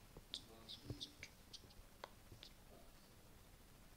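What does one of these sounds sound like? Fingertips tap lightly on a touchscreen keyboard.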